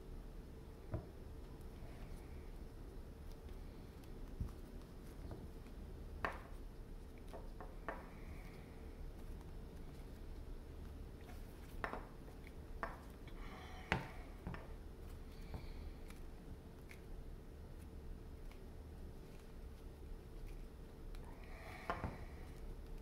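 Small clicks and taps sound now and then against a wooden surface.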